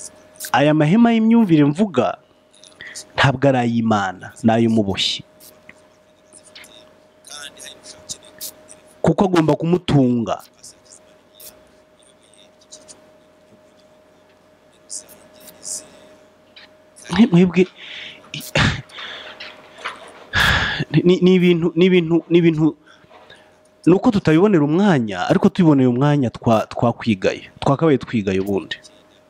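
A man speaks calmly and close, with pauses.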